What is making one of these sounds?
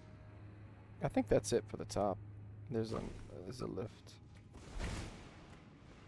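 A sword swings and slashes through the air.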